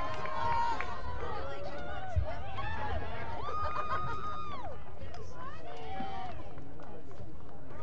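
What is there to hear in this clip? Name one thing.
Young women call out to each other from a distance outdoors.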